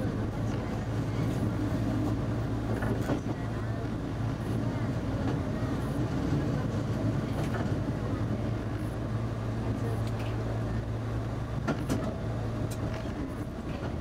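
A train engine rumbles steadily as the train rolls along the track.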